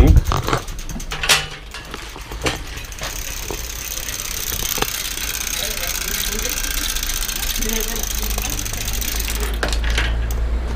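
A bicycle rattles and knocks as it is wheeled about.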